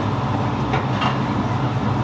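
Soup pours from a ladle into a bowl.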